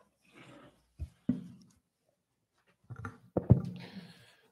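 A microphone thumps as a young man adjusts it.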